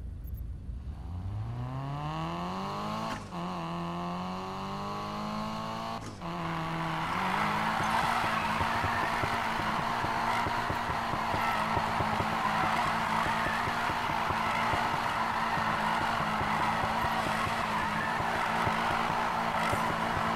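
A car engine revs up and shifts through gears.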